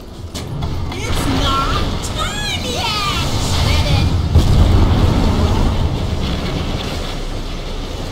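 Video game spell effects whoosh and chime during a fight.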